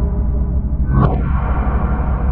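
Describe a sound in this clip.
A short electronic blast bursts out.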